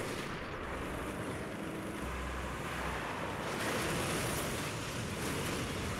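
A heavy truck engine roars.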